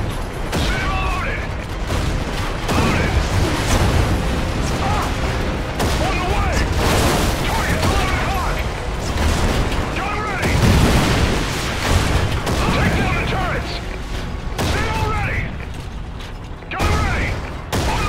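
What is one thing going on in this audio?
A tank cannon fires with heavy blasts.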